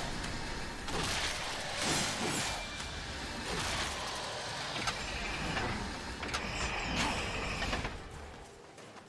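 A sword slashes and clangs against a monster in a fight.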